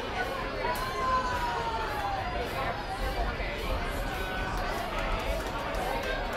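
A crowd chatters nearby.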